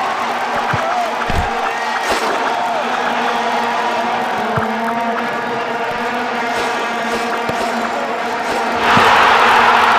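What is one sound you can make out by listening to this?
A ball is struck with short thuds.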